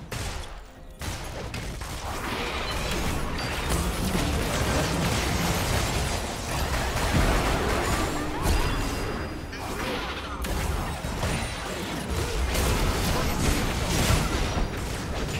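Video game battle effects crackle and boom in quick bursts.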